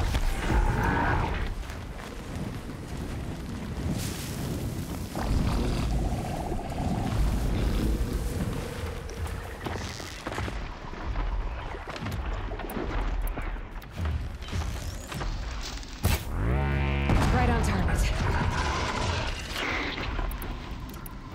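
Fire bursts and crackles with low rumbling booms.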